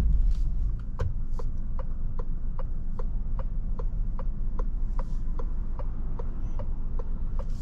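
A car's turn signal ticks steadily.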